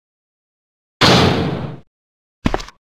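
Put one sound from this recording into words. A heavy door thuds shut.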